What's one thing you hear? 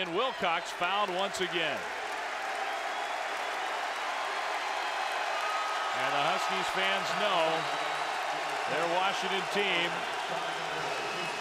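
A large crowd cheers loudly in a big echoing arena.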